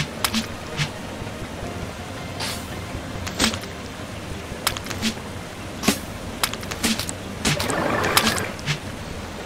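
Short electronic game sound effects blip and click repeatedly.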